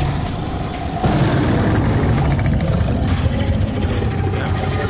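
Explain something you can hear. A monster growls and roars loudly.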